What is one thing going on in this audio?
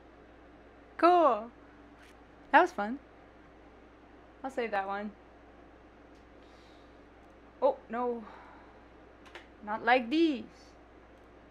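A young woman speaks close to a microphone in short, lively bursts.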